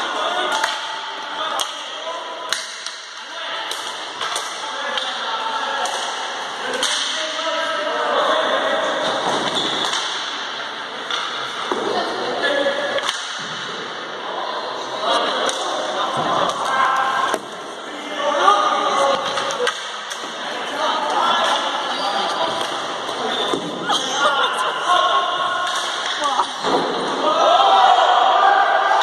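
Players call out to each other across an echoing hall.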